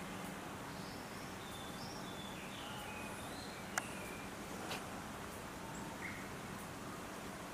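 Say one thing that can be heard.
A chimpanzee rustles through tall grass.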